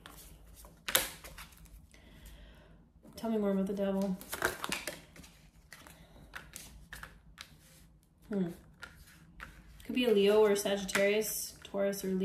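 Cards flick and slap softly as a deck is shuffled by hand.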